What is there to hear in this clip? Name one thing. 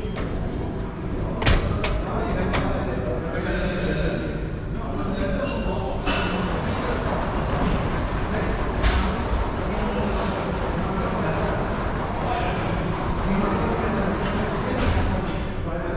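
Weight plates clank on a gym machine as it is pulled down and let back up.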